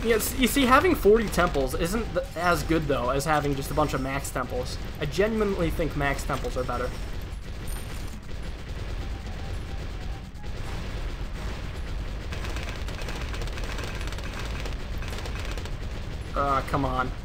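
Rapid popping and crackling game effects sound throughout.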